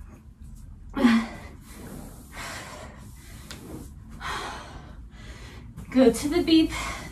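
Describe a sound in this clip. Feet thud on the floor.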